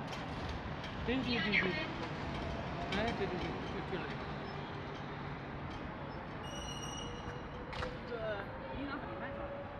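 Scooters pass along the road.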